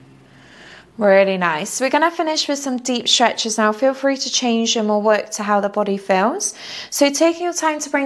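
A young woman talks calmly and clearly into a nearby microphone.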